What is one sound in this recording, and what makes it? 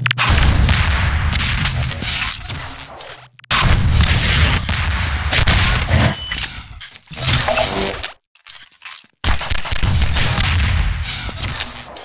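Loud explosions boom and rumble one after another.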